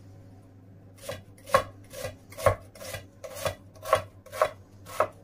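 A knife chops an onion on a wooden board with steady knocks.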